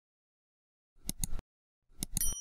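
A mouse button clicks twice.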